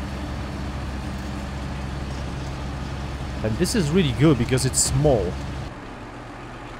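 A truck engine rumbles steadily at idle.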